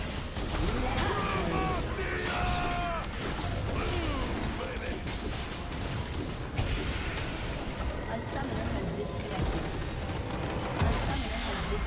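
Game battle sounds clash and burst loudly.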